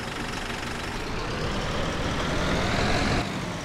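A diesel city bus engine revs up as the bus pulls away.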